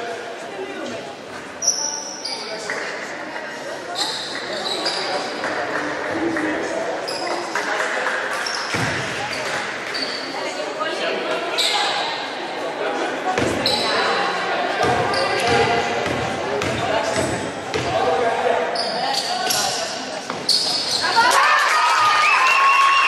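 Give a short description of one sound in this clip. A crowd of spectators murmurs and calls out throughout.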